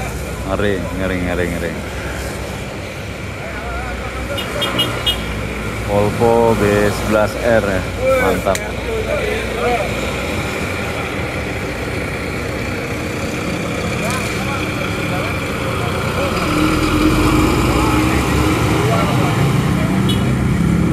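A large bus engine rumbles steadily nearby.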